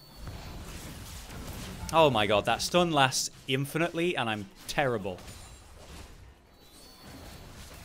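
Fantasy combat sound effects clash and whoosh.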